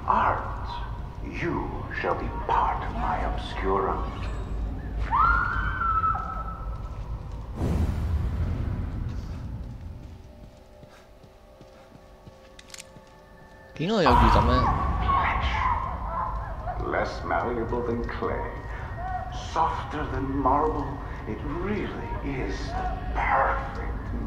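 A man speaks slowly and menacingly, close by.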